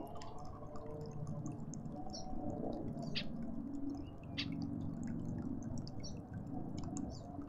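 A bird pecks at food with soft, quick taps.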